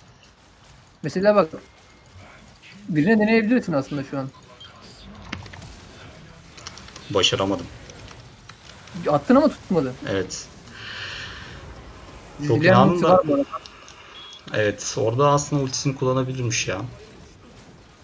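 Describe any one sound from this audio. A young man talks in short bursts, close to a microphone.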